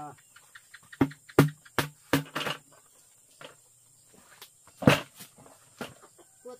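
Plastic buckets knock and thud as they are set down.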